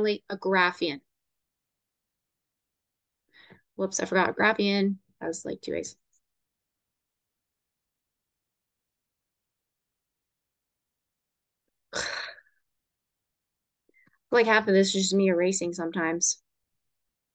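A young woman speaks calmly through a microphone, pausing between phrases.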